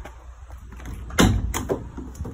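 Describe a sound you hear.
A van door latch clicks.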